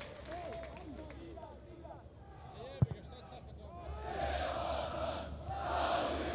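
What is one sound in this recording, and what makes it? A large stadium crowd cheers and roars, swelling louder.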